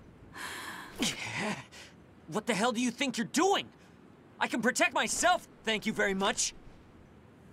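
A young woman speaks sharply and with irritation.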